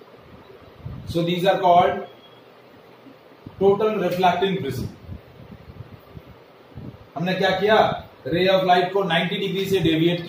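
A young man speaks calmly and explains, close by.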